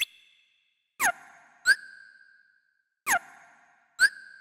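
Falling electronic swooshes sound twice.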